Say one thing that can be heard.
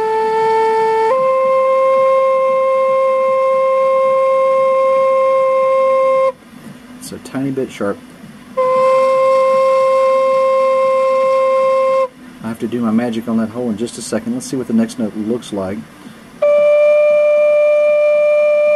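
An electronic tuner plays a steady reference beep, changing pitch between notes.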